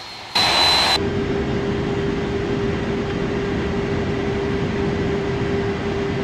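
Jet engines hum steadily, muffled as if heard from inside a cockpit.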